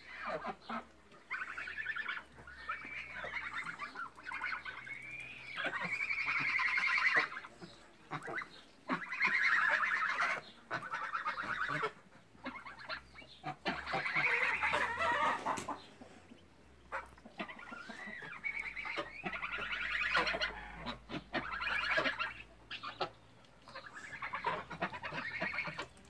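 Geese honk and cackle loudly nearby, on and off.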